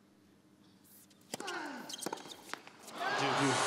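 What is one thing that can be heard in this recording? A racket strikes a tennis ball with sharp pops.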